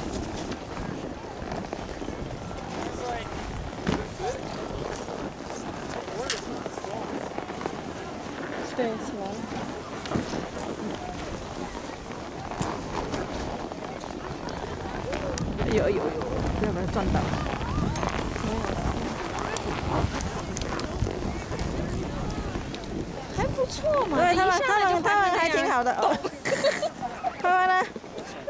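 Children talk and call out nearby outdoors.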